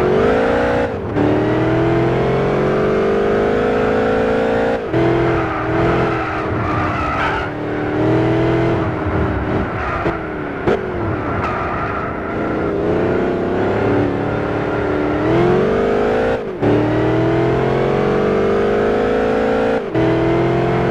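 A supercharged V8 sports car shifts up through the gears, its engine note dropping with each change.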